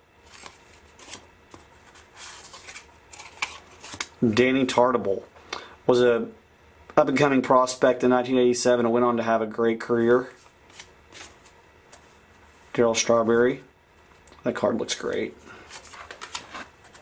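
Stiff cards rustle and click softly as they are shuffled by hand.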